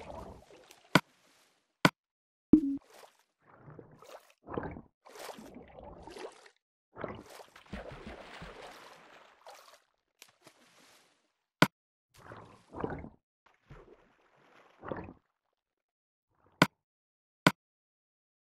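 Short sharp clicks sound from a game menu.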